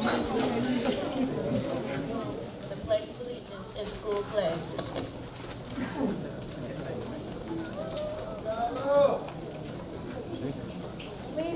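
A crowd of children and adults murmurs and chatters in an echoing room.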